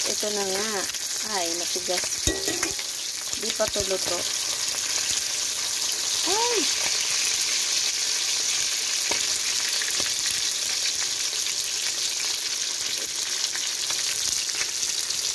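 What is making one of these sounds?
Fish sizzles as it fries in hot oil in a wok.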